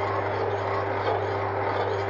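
A spoon scrapes in a pot.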